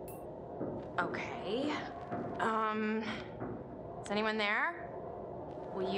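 A young woman speaks hesitantly and quietly, close by.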